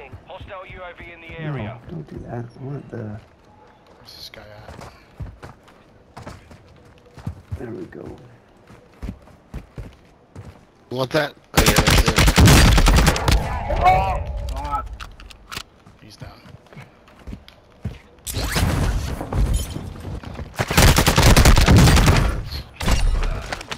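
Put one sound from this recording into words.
Footsteps crunch over gravel and grass.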